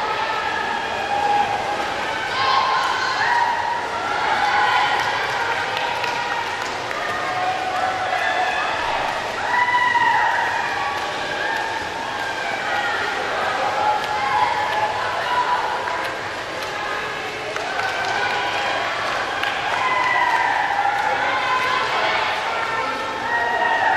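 A crowd of young spectators cheers and shouts in a large echoing hall.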